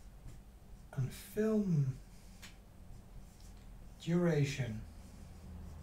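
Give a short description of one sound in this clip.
An elderly man speaks briefly and calmly, close by.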